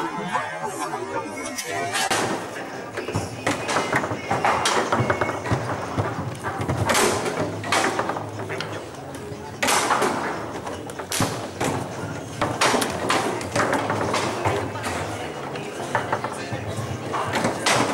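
Metal rods rattle and thud as players spin and slide them.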